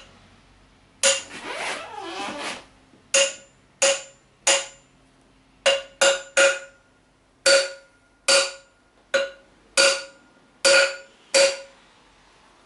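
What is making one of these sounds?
A hammer strikes metal sharply and rings, over and over.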